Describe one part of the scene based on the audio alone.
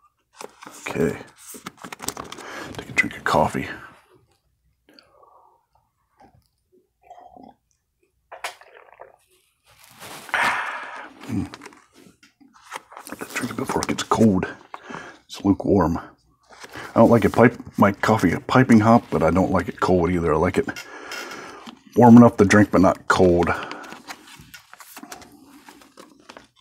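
Plastic sleeves crinkle and rustle under handling hands.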